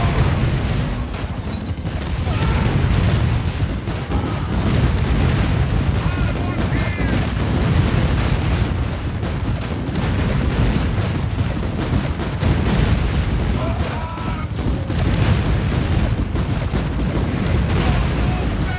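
Explosions boom and rumble in a game.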